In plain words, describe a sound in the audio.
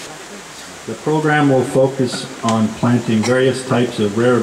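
A man speaks into a microphone, reading out in a loud, steady voice.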